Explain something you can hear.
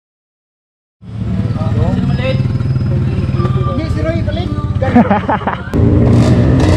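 Motorcycle engines idle and rumble close by.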